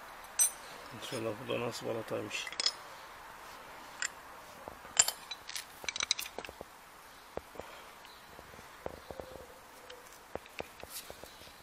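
Metal parts clink and click as hands handle a brake caliper.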